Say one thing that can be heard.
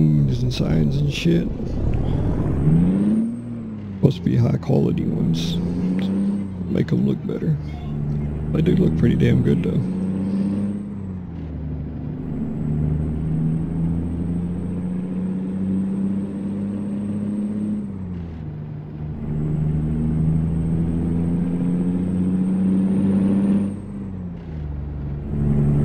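A truck engine hums steadily, its pitch rising and falling with the gears.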